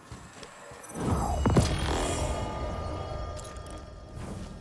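A deep boom with a bright, ringing chime swells up and slowly fades.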